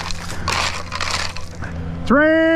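A rake scrapes across gravel and dirt.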